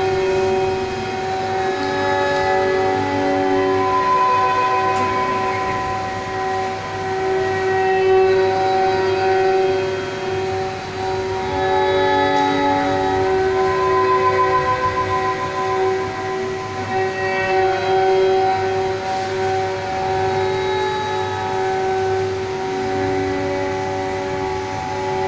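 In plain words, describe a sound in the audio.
Instrumental music plays through a loudspeaker.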